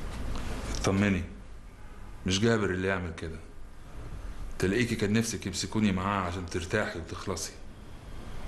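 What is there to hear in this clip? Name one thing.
A man speaks in a low, tense voice nearby.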